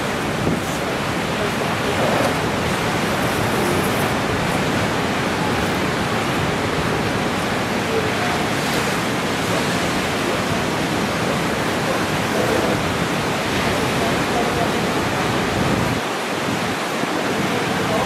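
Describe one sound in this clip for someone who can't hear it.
Waves break and crash with a steady roar of surf.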